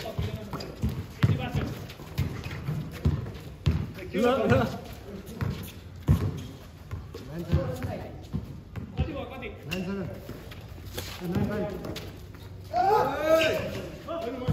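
Sneakers scuff on the concrete court.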